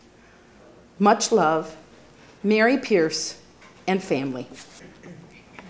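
A woman speaks slowly and dramatically.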